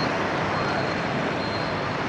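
A motorbike drives past nearby.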